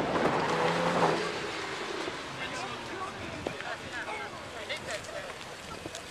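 Tyres squeal on pavement.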